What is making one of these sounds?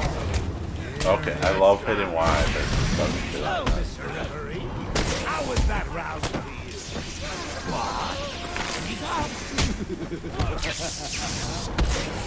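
Men grunt and cry out as they are struck.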